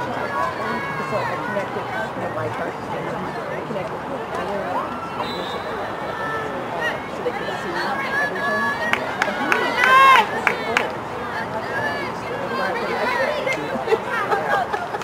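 Young women players shout and call to each other across an open field.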